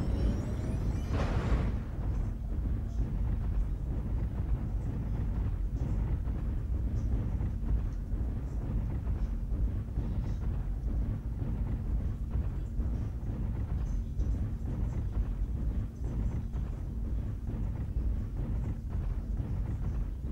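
A heavy walking machine rumbles steadily with deep, thudding footsteps.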